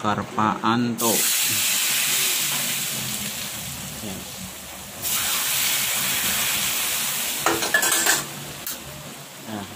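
Hot oil crackles and sizzles loudly as it is poured over chopped chilies.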